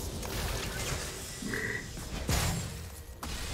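Video game combat effects of melee hits and spells ring out.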